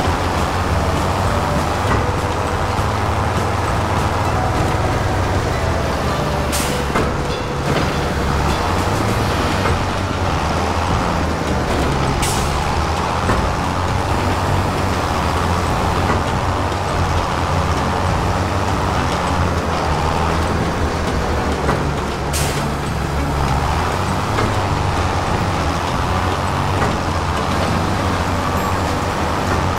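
A diesel tractor engine drones while pulling a bale trailer.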